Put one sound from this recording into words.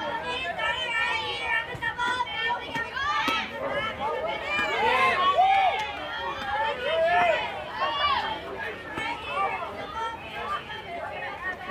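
Young girls cheer and chant loudly outdoors.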